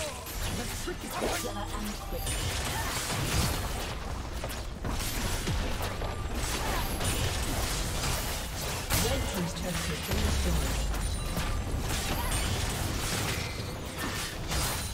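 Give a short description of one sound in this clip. Game battle effects clash, zap and crackle in quick bursts.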